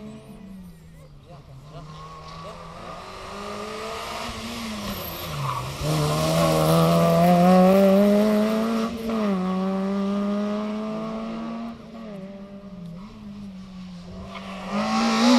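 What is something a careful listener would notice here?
A second rally car engine roars closer, revving through the gears, and fades away.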